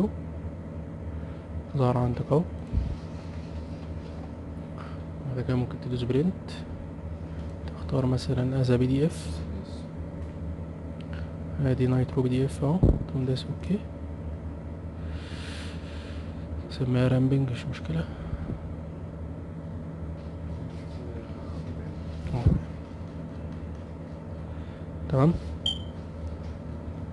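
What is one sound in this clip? A mouse clicks now and then.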